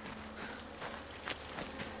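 A plant is plucked from the ground.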